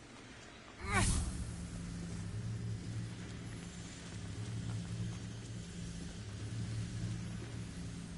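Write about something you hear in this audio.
A low magical hum drones steadily.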